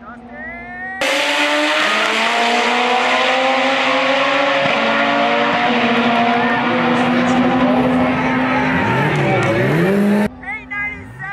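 Two drag racing cars roar loudly as they accelerate.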